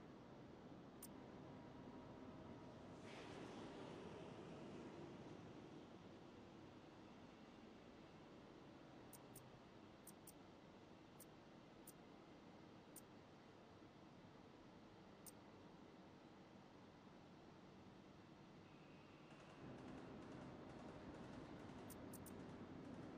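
Short, sharp interface clicks sound as menu items change.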